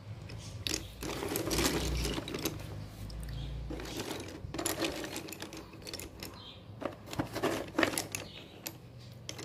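Wooden sticks clatter and rattle as a hand rummages through them.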